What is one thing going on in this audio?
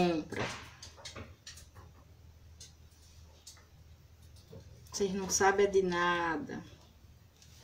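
A woman speaks calmly close by.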